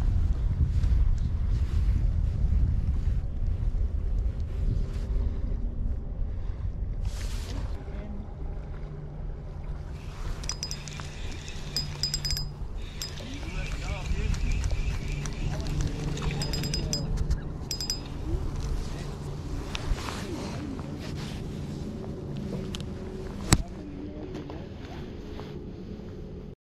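Wind blows across open water outdoors.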